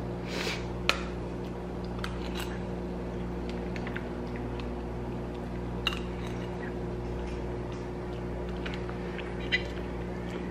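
A metal spoon clinks and scrapes against a plastic cup.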